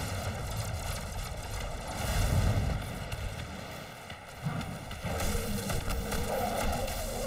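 A gun fires in rapid bursts with heavy booms.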